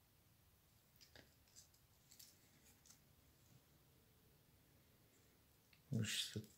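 Small plastic parts click and tap as a toy is handled close up.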